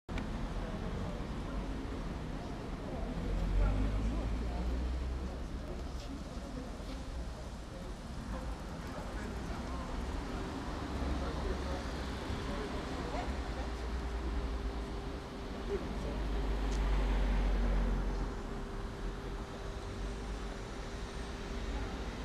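Outdoor city noise rumbles steadily.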